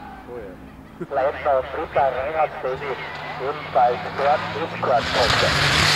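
A twin-turbo Porsche 911 race car with a flat-six engine crackles and pops as it brakes and downshifts into a bend.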